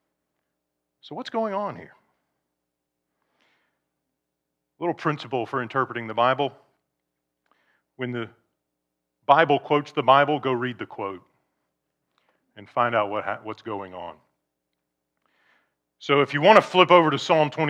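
A middle-aged man speaks calmly through a microphone, with pauses.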